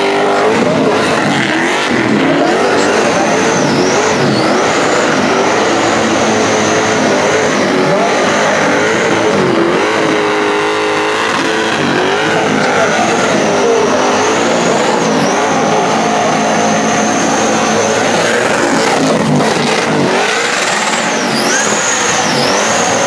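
Tyres squeal as they spin on asphalt.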